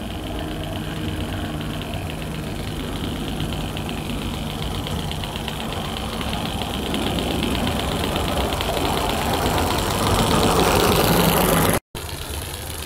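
A small steam locomotive chuffs and hisses as it draws closer.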